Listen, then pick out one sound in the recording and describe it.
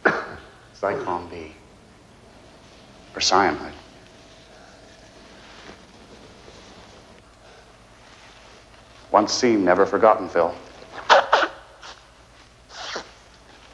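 A man sniffs through a handkerchief.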